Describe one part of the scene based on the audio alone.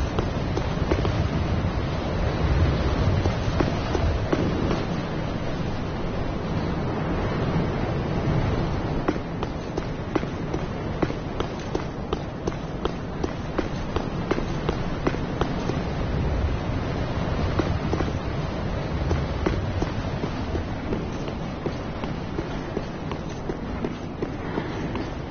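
Armored footsteps run quickly over stone and tiles.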